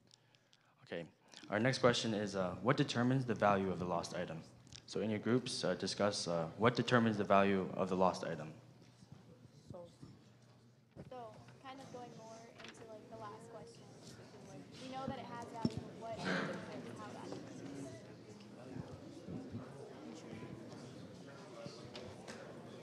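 A young woman speaks calmly into a microphone, heard over loudspeakers in a large echoing hall.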